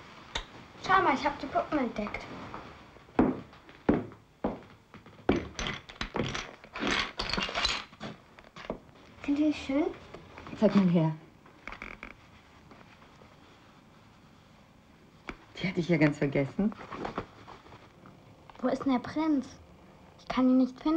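A young girl speaks with excitement close by.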